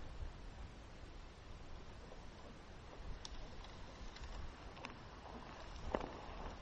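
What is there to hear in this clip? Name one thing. Tyres crunch and scrape over loose gravel.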